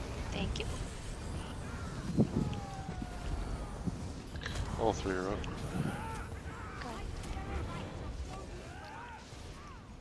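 Magic spells crackle, whoosh and boom in a busy battle.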